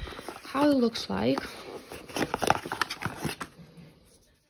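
A cardboard box scrapes and rustles as an object is slid out of it.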